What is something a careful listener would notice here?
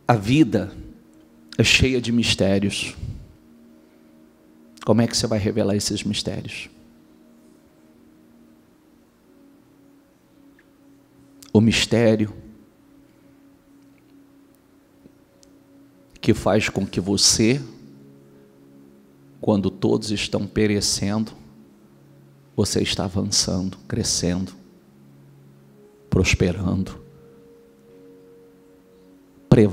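A man speaks with emphasis through a microphone, in short bursts with long pauses.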